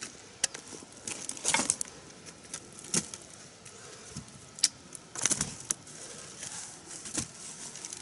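Cassava roots thud and knock as they are dropped into a basket.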